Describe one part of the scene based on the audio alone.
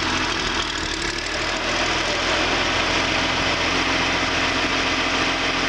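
A diesel engine idles steadily with a low rumble.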